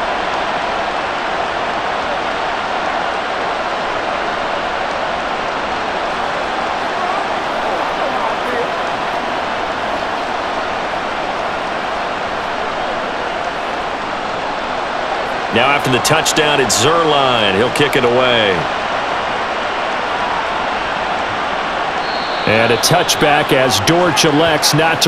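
A large crowd roars steadily in a stadium.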